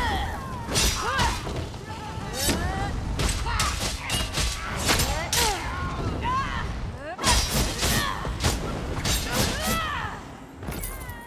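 Blades clash sharply in a fight.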